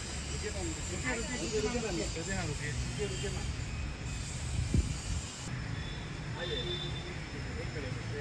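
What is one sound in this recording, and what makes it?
A young woman speaks briefly nearby, outdoors.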